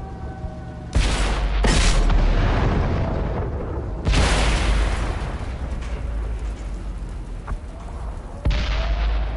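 A tank cannon fires with loud booming blasts.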